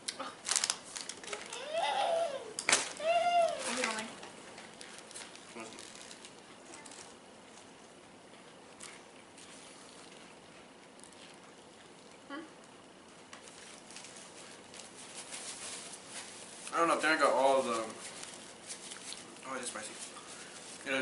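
Paper wrappers crinkle as people eat.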